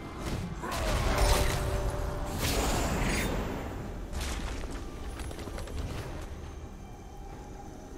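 Blows land with sharp thuds.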